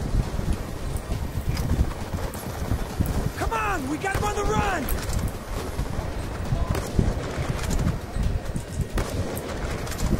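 Sniper rifle shots crack loudly.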